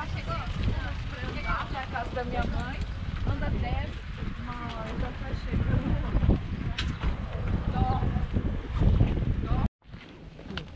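Young people chat casually as they walk outdoors.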